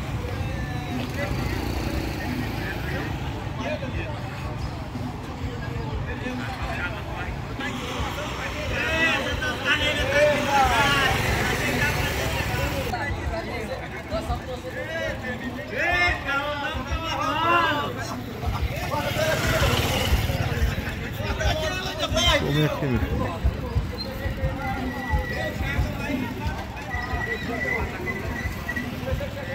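Motorcycle engines rumble and putter along a street.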